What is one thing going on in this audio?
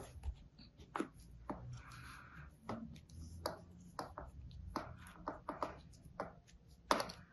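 Sand crumbles off a plastic mould with soft clicks.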